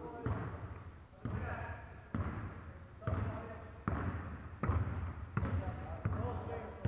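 A basketball bounces on a wooden floor, echoing through a large hall.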